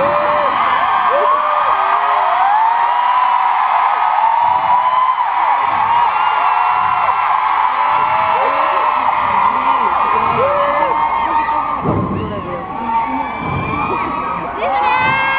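A crowd sings and screams loudly along close by.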